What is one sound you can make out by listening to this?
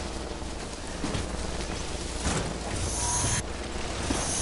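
Cargo crates rattle and clatter on a moving bike.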